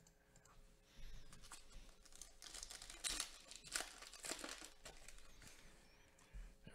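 A foil card pack crinkles and tears as hands open it.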